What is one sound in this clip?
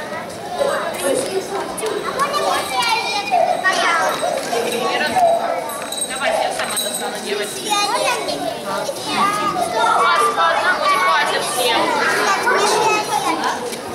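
Young children chatter and call out.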